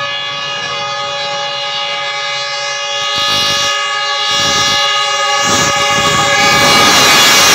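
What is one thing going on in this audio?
A train horn blares loudly and steadily as a train approaches.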